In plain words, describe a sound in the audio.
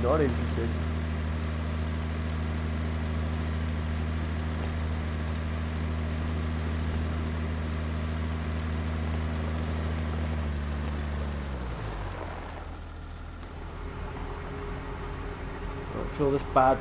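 A tractor engine hums steadily, then winds down and idles.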